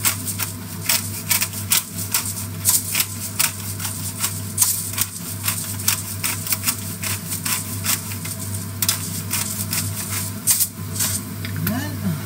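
A pepper grinder crunches in quick bursts of clicks.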